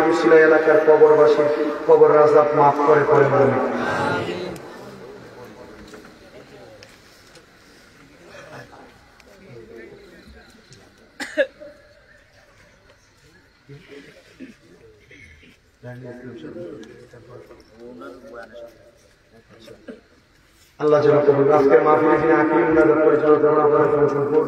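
A young man sings loudly into a microphone, heard through loudspeakers outdoors.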